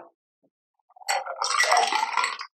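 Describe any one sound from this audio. A cocktail poured from a shaker splashes over ice into a glass.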